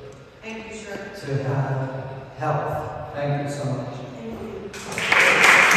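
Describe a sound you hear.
An older man speaks calmly into a microphone in an echoing hall.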